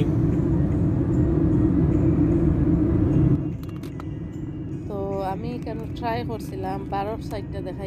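Engine and road noise rumble steadily inside a moving car.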